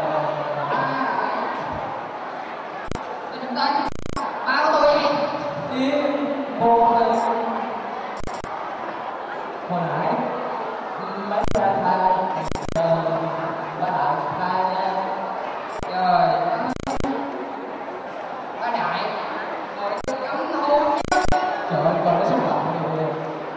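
A young man talks back into a second microphone over a loudspeaker.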